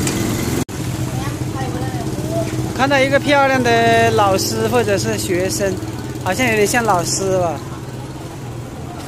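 A motorcycle engine idles nearby.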